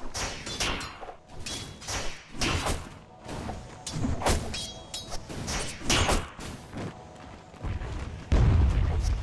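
Sharp magical blasts and hits crackle in a fight.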